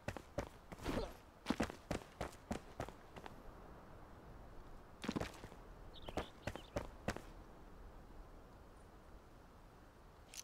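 Footsteps scrape and thud while climbing a rough wall.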